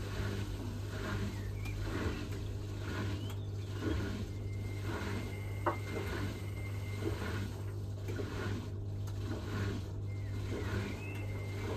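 Wet laundry tumbles and thumps inside a washing machine drum.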